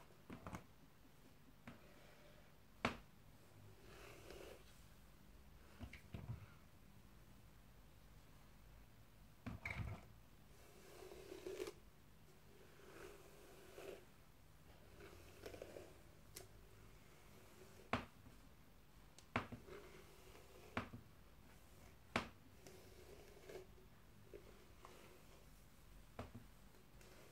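A plastic container taps and knocks close by.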